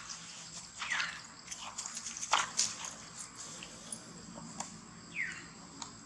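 A monkey rustles through grass and dry leaves.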